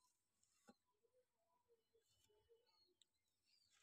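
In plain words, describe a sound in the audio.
A pigeon coos softly nearby.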